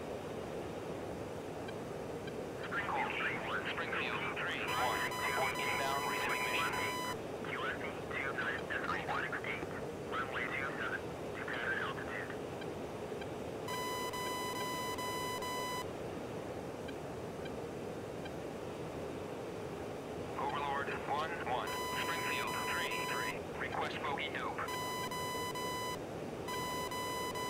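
A steady jet engine and wind roar fills a fighter cockpit in flight.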